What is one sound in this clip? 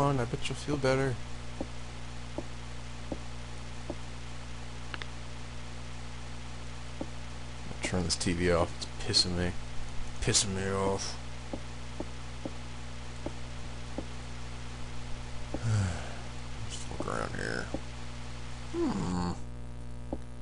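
Footsteps tap slowly and evenly on a hard floor.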